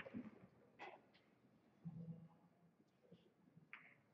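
A cue strikes a pool ball.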